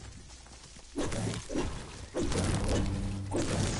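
A pickaxe strikes stone with sharp knocks.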